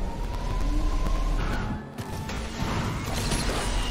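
A car lands hard with a thud after a jump.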